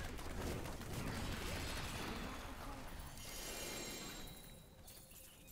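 Game spell effects whoosh and crackle loudly.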